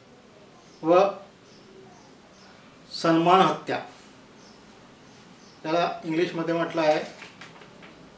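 A middle-aged man speaks close by in short, halting bursts.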